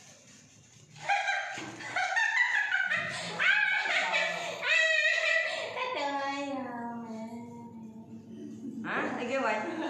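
A woman talks loudly and with animation nearby.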